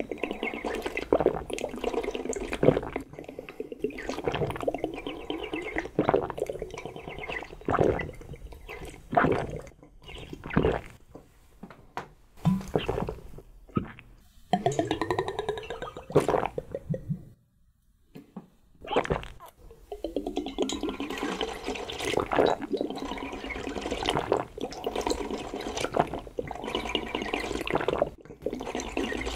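A man slurps and sucks loudly from a glass close to the microphone.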